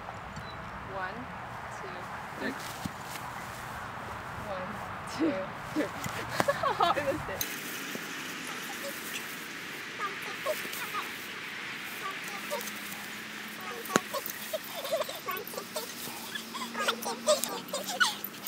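Young women laugh and shout excitedly outdoors.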